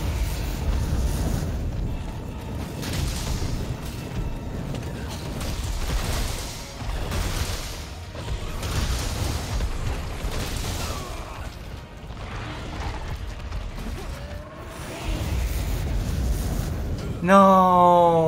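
A huge beast roars and rumbles.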